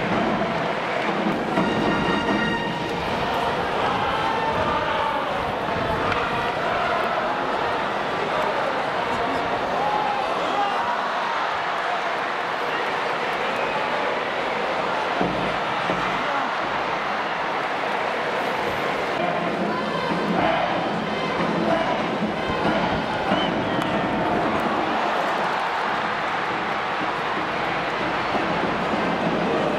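A large crowd cheers and chants loudly in a stadium.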